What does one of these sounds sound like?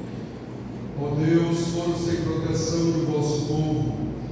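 A crowd of men and women sings together in a large echoing hall.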